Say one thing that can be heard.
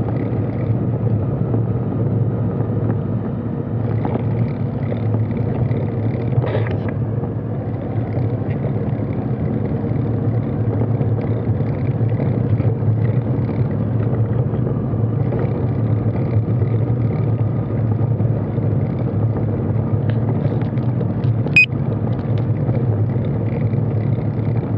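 A motorcycle rolls slowly alongside, its engine idling.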